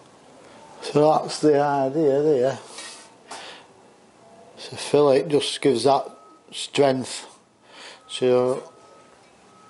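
A middle-aged man speaks calmly close by.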